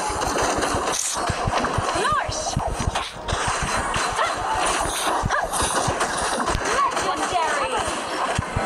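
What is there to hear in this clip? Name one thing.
Game battle effects blast and clash rapidly.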